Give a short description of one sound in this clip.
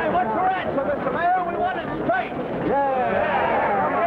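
A crowd jeers loudly.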